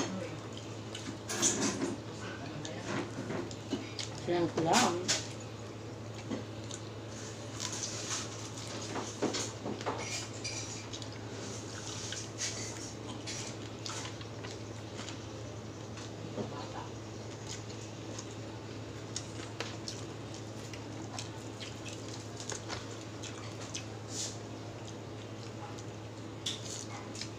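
Food is chewed with wet smacking close by.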